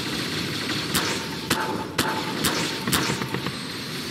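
A tool gun fires with sharp electric zaps.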